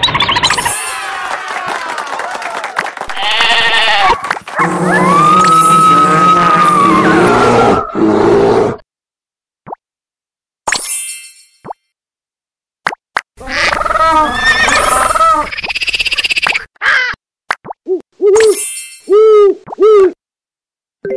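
Cartoon sound effects chirp, pop and jingle.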